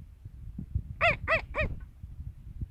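A goat bleats loudly three times nearby.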